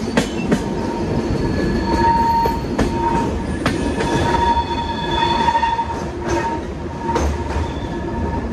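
Train wheels squeal faintly against the rails.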